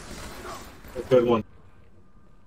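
A middle-aged man speaks briefly and loudly close to a microphone.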